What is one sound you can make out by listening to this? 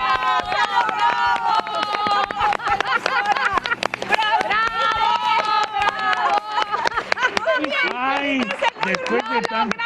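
Several women clap their hands in rhythm.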